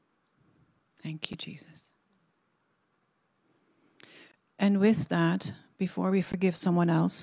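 An older woman speaks calmly into a microphone, reading out.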